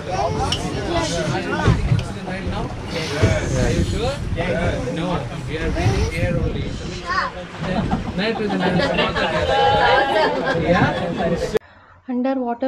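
A boat engine roars steadily as the hull rushes through water.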